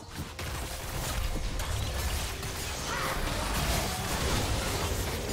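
Video game combat effects clash, whoosh and thud.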